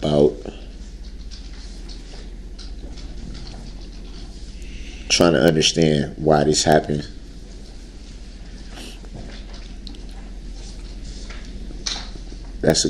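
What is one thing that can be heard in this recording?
A man speaks in short bursts with long pauses.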